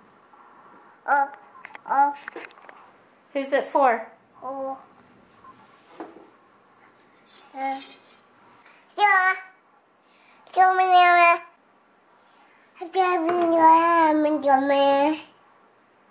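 A toddler babbles and chatters with animation close by.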